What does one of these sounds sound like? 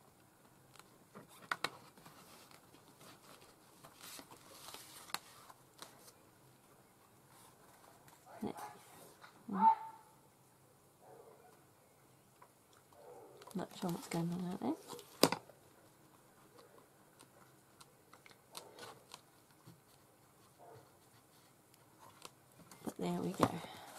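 Stiff paper pages rustle and flap as they are turned.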